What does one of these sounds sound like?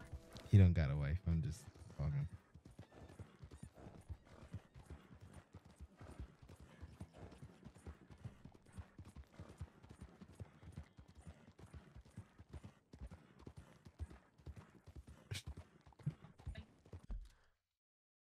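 A horse's hooves thud quickly along a dirt trail.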